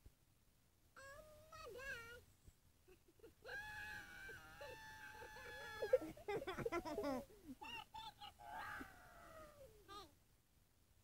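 A young girl makes drawn-out, playful vocal sounds, heard through a small phone speaker.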